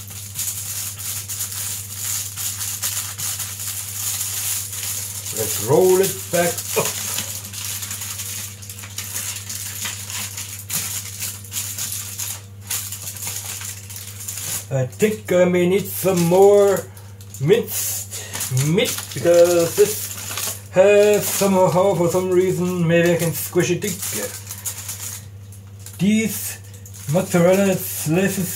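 Aluminium foil crinkles as hands fold it.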